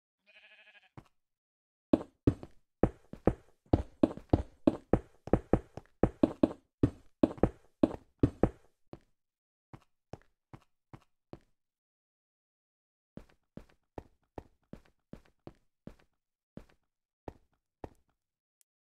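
Blocks are placed one after another with quick soft clunks.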